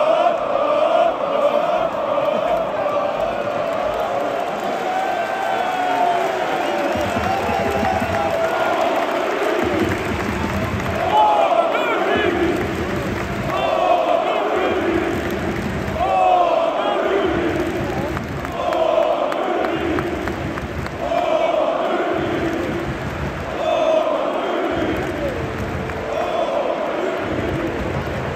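A huge stadium crowd chants and sings loudly in rhythm, echoing around a large open arena.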